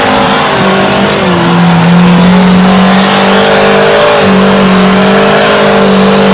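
A buggy's engine revs loudly as it climbs over rocks.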